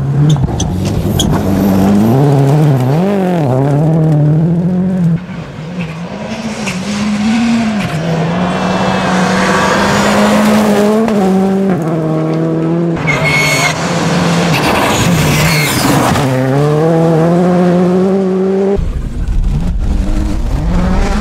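A rally car engine roars and revs hard as it races past.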